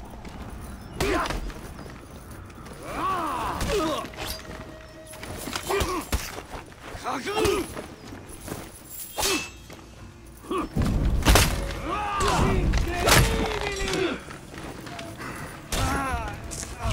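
Swords clash and clang repeatedly.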